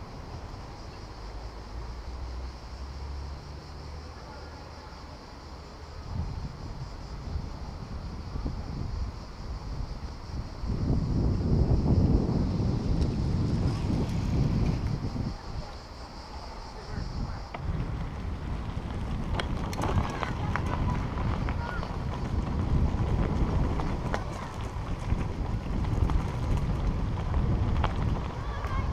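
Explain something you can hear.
Wind rumbles and buffets past outdoors.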